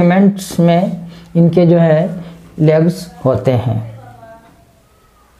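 A middle-aged man speaks clearly and calmly, close by.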